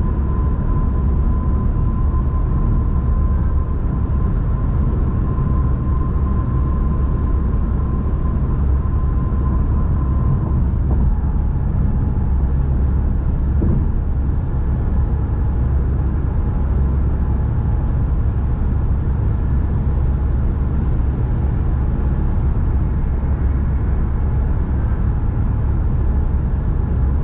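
Tyres rumble steadily on a smooth road.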